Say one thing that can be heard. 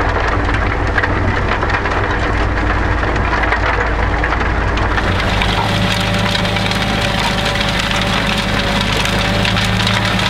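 A tractor engine rumbles steadily outdoors.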